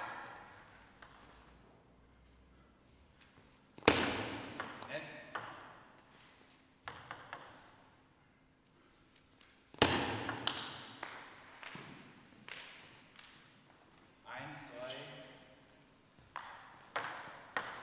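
A ping-pong ball clicks sharply against paddles and a table in quick rallies.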